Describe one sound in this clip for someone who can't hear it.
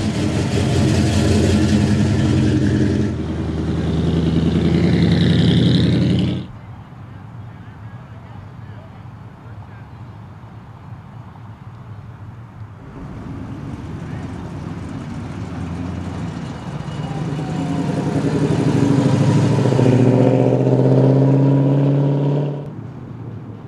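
A powerful car engine rumbles deeply as a car drives slowly past.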